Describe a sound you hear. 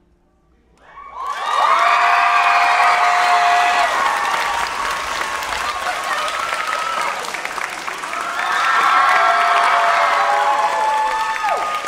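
A crowd cheers and screams loudly in a large hall.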